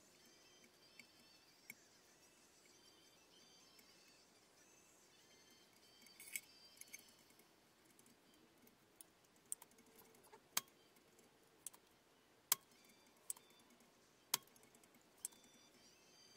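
Small tools click and tap against a hard surface close by.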